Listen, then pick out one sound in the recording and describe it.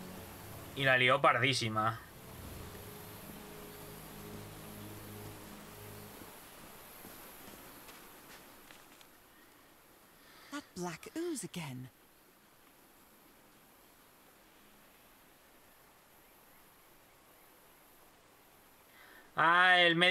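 A young man talks into a close microphone in short, lively bursts.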